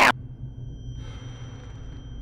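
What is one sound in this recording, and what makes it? A man breathes heavily outdoors.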